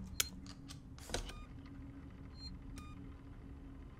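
Buttons click on a phone keypad.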